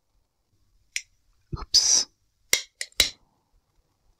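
A cigar cutter snips with sharp clicks.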